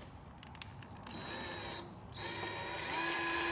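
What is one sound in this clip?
A power drill whirs briefly.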